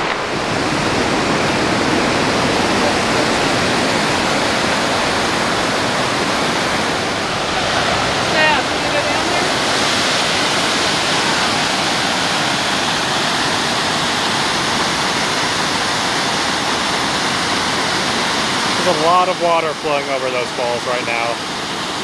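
Rushing water roars loudly and steadily nearby.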